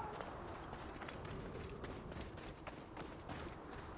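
Footsteps run across soft sand.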